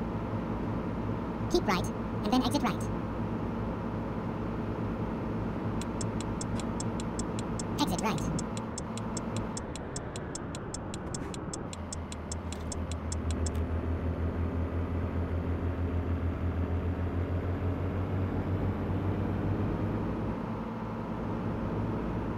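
A truck engine hums steadily while driving.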